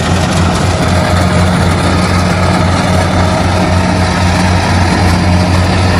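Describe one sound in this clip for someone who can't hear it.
A combine harvester's diesel engine drones steadily close by.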